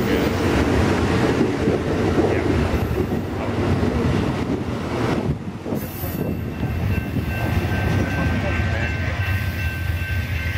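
A passenger train rumbles and clatters past close by, then fades as it rolls away.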